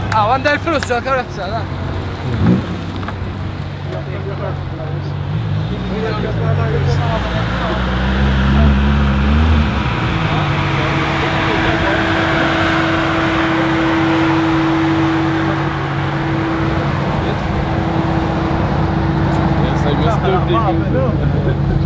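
A car engine idles nearby with a low rumble.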